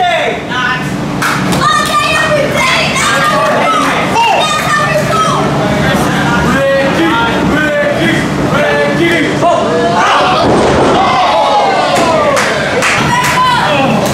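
A crowd of men and women shouts and cheers in an echoing hall.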